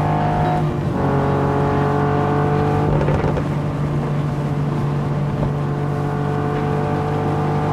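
Tyres hum on asphalt.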